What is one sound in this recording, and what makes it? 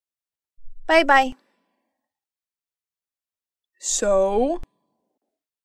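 A young woman speaks sadly in short phrases, close by.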